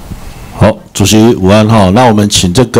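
A young man speaks loudly into a microphone, heard through a loudspeaker in a large room.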